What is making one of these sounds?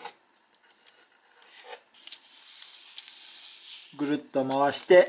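Paper rustles and crinkles as it is folded and creased.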